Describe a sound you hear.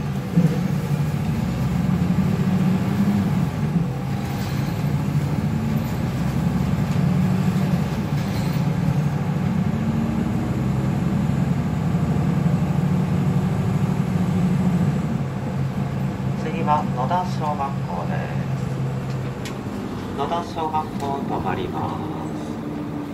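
A bus engine drones steadily while the bus drives.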